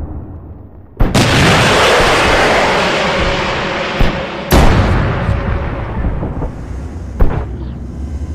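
A tank cannon fires with loud booming blasts.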